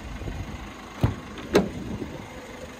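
A van's door latch clicks open.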